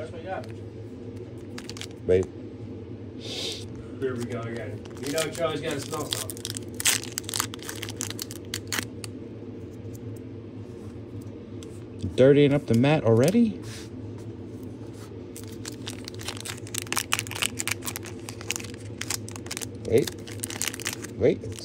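Foil card wrappers crinkle and tear between fingers.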